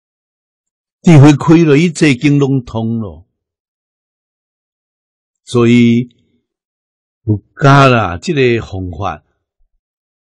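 An elderly man speaks calmly and close to a microphone, in short phrases with pauses.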